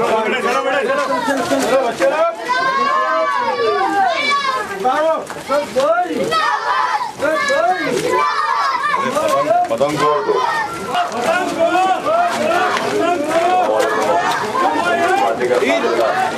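A crowd of men chants and shouts loudly nearby.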